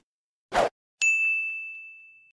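A bright chime rings out.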